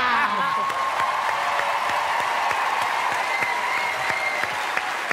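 A large audience applauds in a big echoing hall.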